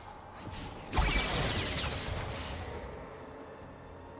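Magical spell effects burst with a loud whooshing blast.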